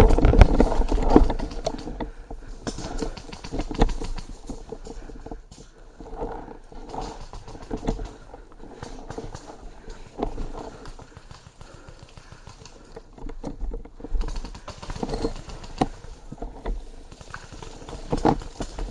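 Tall grass and leafy branches rustle and swish close by as someone pushes through them.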